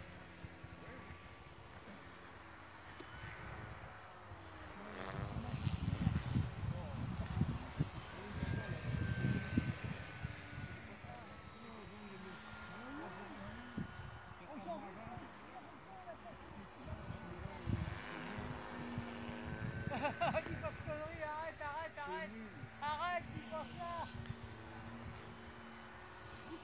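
A model airplane engine drones overhead, rising and falling in pitch.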